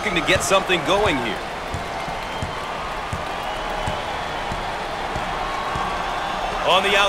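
A basketball bounces on a hardwood floor in a steady rhythm.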